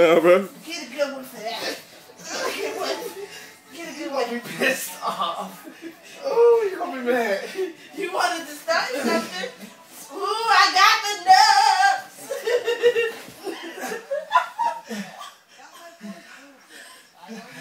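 Bodies scuffle and thump on a carpeted floor.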